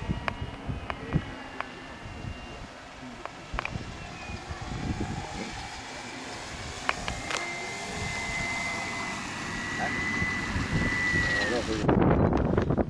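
A small model aircraft engine whines overhead, its pitch slowly shifting before it cuts off.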